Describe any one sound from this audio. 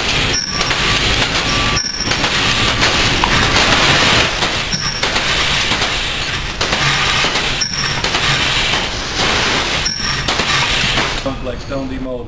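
A stone demolding machine runs with a loud mechanical roar.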